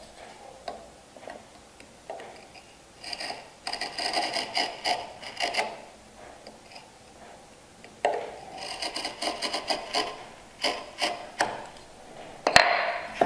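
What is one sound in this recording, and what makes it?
A knife scratches along wood as it scores a line.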